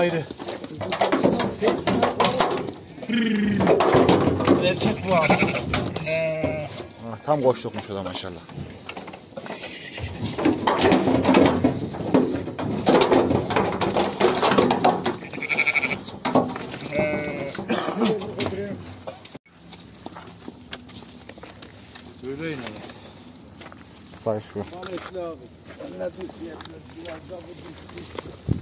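Sheep hooves shuffle and patter on the ground.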